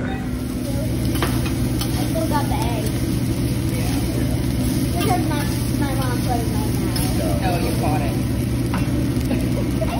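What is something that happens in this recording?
Metal spatulas scrape and clack on a hot griddle.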